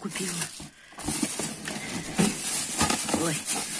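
A plastic sheet crinkles and rustles under a hand.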